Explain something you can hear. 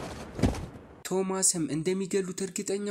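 A man speaks in a firm voice.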